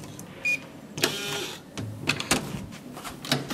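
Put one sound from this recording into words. A door latch clicks.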